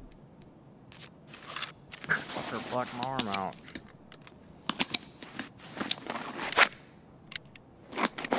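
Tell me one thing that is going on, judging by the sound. Game menu clicks and item rustles sound as gear is moved around.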